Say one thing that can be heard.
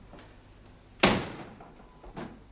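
A door slams shut.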